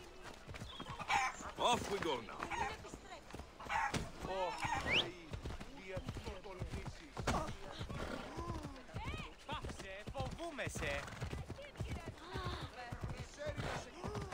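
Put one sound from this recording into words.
A horse's hooves gallop on a dirt path.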